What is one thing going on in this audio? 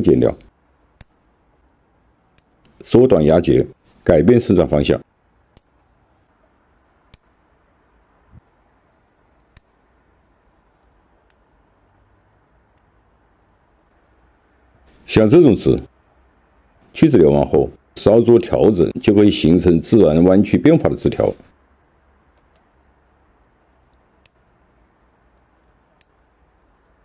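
Pruning shears snip through small twigs with sharp clicks.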